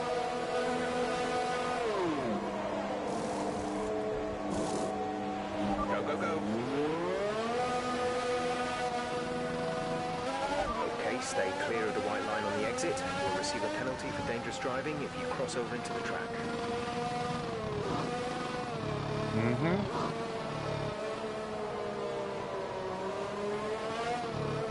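A racing car engine whines at high pitch, dropping to an idle and then revving up and shifting through the gears.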